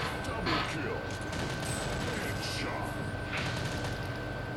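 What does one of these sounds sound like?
Video game gunfire cracks in quick bursts.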